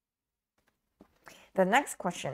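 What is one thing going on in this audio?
A young woman speaks calmly and closely into a microphone.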